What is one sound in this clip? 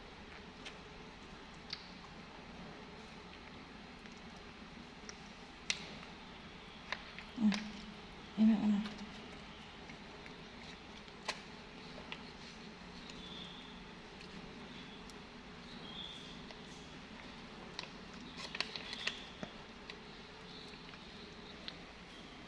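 A baby monkey chews and sucks on a stick with soft smacking sounds.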